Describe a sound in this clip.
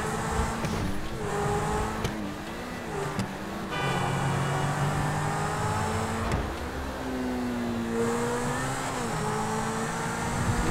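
A sports car engine roars, its pitch rising and dropping as it shifts gears.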